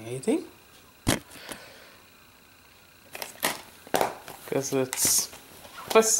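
A plastic disc case clicks and snaps shut.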